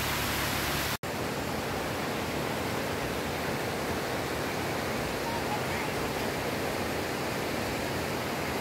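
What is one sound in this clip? A river rushes and gurgles over stones.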